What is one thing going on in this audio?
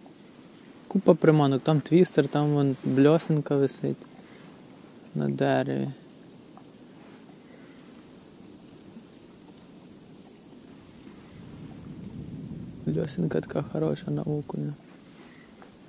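A man talks calmly, close to the microphone.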